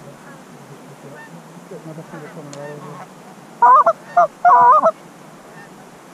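A flock of geese calls softly in the distance.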